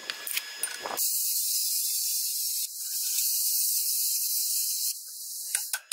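A grinder whines steadily against metal.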